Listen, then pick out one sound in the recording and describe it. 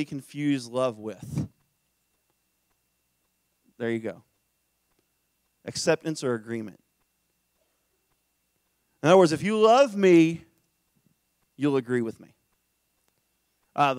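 A man speaks into a microphone in bursts with pauses, heard through loudspeakers in a large room.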